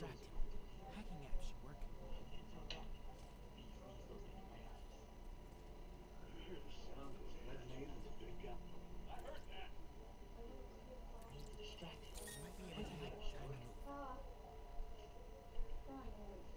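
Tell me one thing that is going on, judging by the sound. A young woman talks casually into a nearby microphone.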